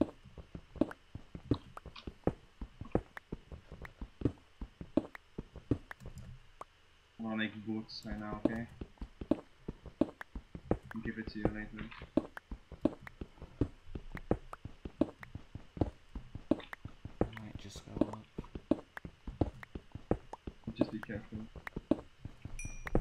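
A pickaxe repeatedly digs and breaks stone blocks with quick crunching knocks.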